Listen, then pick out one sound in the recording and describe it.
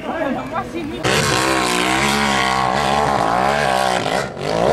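A motorcycle engine revs hard and whines as it climbs.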